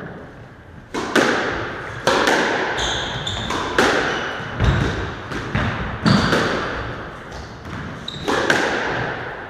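A squash ball smacks hard against the walls, echoing around the court.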